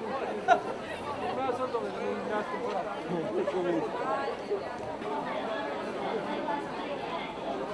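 A large crowd of men and women chatters loudly all around, close by.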